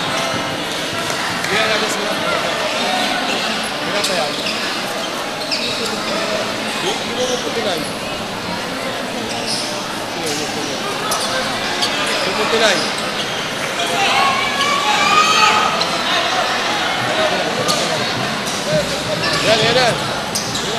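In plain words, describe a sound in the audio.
A large crowd murmurs and cheers in an echoing gym.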